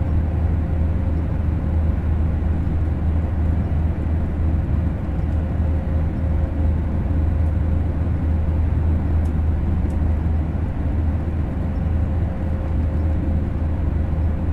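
A train rumbles steadily along the tracks with a low hum.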